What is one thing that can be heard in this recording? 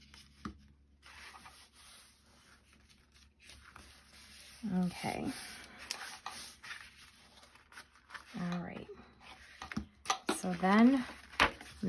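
Paper rustles and crinkles as it is pressed and folded.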